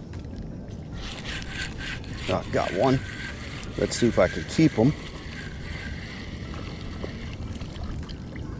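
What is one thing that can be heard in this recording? A fishing reel whirs and clicks as line is reeled in.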